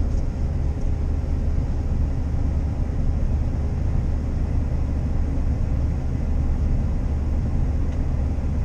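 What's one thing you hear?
A combine harvester's engine drones loudly and steadily from inside the cab.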